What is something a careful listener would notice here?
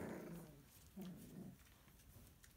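Puppies growl playfully.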